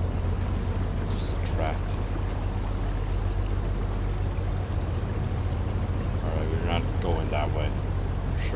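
A man speaks briefly and calmly into a microphone.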